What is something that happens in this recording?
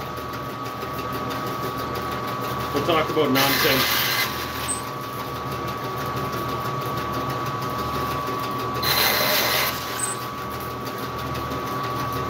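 A band saw hums steadily.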